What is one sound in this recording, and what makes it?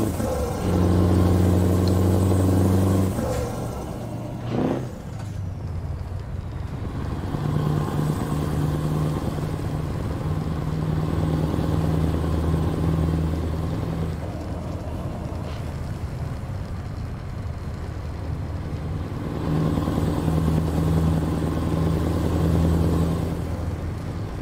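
A truck engine hums and rumbles steadily, rising and falling as it changes speed.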